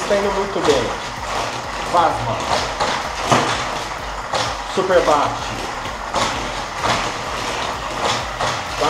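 Small toy cars roll and rattle along a plastic track.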